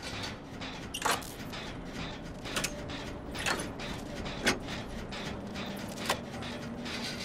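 Metal parts rattle and clank as a machine is repaired.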